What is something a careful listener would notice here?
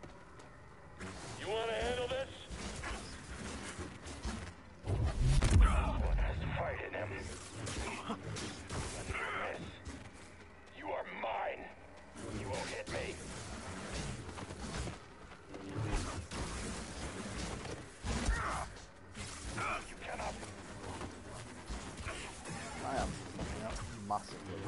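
Blaster bolts fire in sharp bursts.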